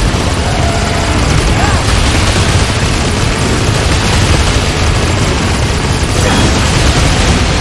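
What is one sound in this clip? A motorbike engine roars at high speed.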